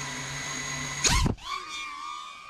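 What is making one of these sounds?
A small drone's motors scream as it takes off sharply.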